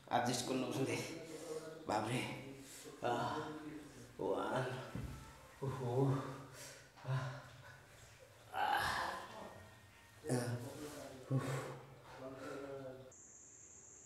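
A young man moans and cries out in distress close by.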